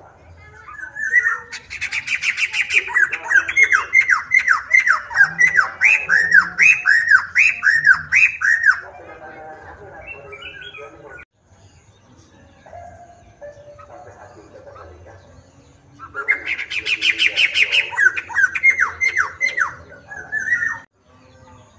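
A songbird sings loud, rapid chirping phrases close by.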